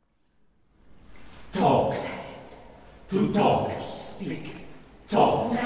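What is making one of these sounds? A mixed choir sings in a large, echoing hall.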